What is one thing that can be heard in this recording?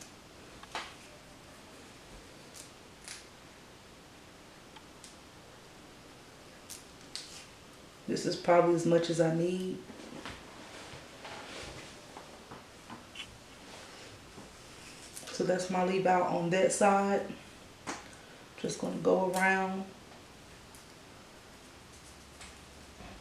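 A comb scrapes softly through hair.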